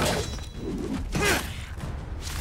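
Metal blades clash and ring out.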